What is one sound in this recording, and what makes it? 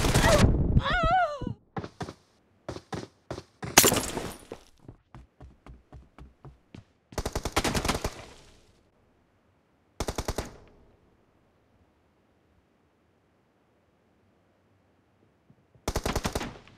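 Rifle fire rattles in short, rapid bursts.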